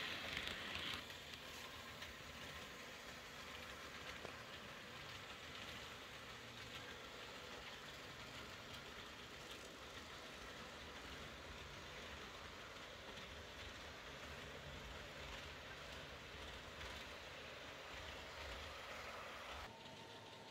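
A model diesel train rolls quietly along model track.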